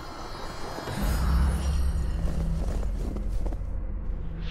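Sword blows strike with sharp hits.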